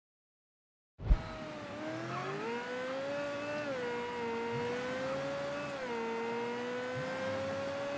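A sports car engine roars and revs up through the gears.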